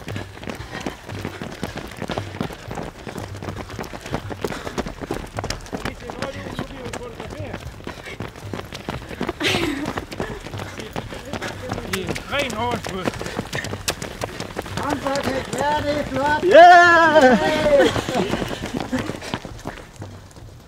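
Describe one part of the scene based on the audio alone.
Footsteps of many runners patter on pavement.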